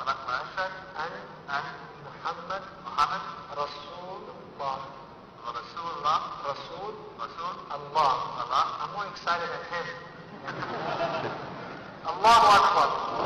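A young man speaks calmly into a microphone, heard through loudspeakers in a large room.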